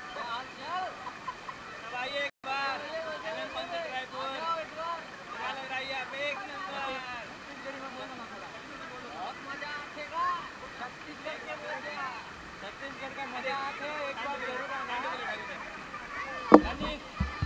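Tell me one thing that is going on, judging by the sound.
Young men talk and laugh with animation close by.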